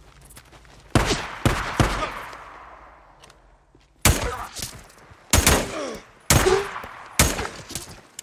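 Rifle shots crack loudly, each followed by a ringing echo.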